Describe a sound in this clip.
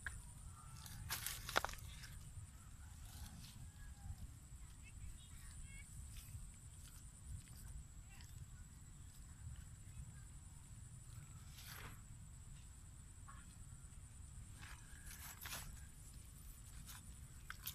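A net rustles and scrapes over wet mud.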